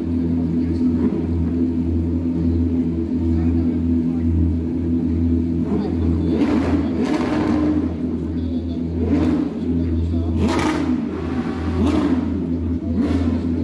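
Racing car engines drone and rumble steadily nearby.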